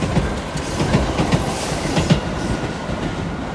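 A train rushes past close by with a loud rumble.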